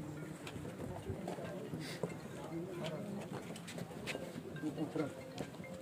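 A crowd of men murmur and talk nearby outdoors.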